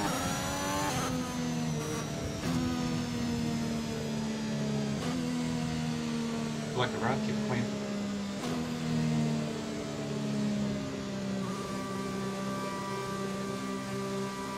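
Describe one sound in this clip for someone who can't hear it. A racing car engine hums steadily as the car slows.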